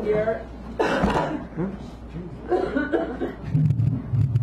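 An elderly man talks loudly nearby.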